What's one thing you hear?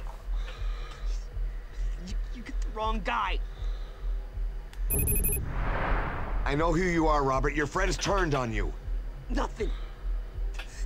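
A middle-aged man talks with animation into a microphone, close by.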